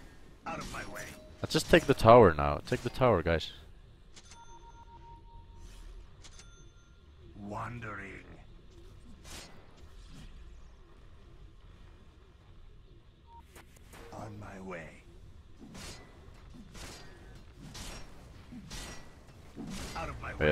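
Magic spell effects whoosh and crackle in a fight.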